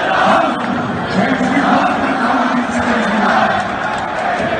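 A crowd of men sings together in a big echoing arena.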